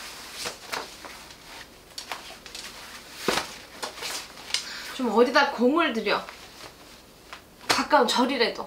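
Paper and plastic packets rustle and crinkle close by.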